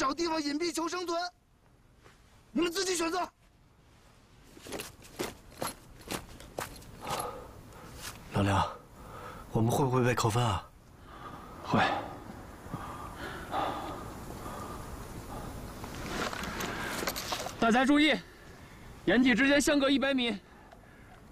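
A man speaks firmly and loudly, close by.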